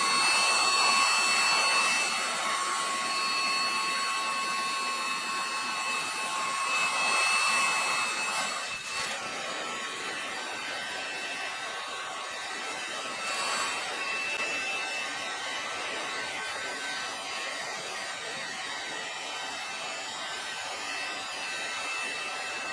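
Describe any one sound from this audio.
A heat gun blows with a steady, hissing roar.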